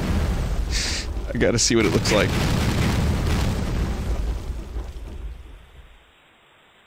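Explosions boom and rumble in quick succession.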